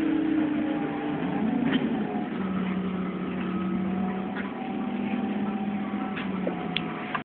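Rain patters steadily against a window.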